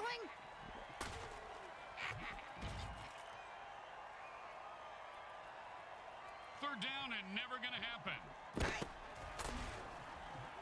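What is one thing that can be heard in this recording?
Armoured players crash together with heavy thuds.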